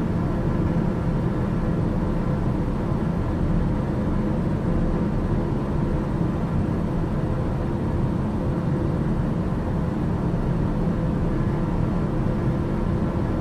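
A light aircraft engine drones steadily, heard from inside the cabin.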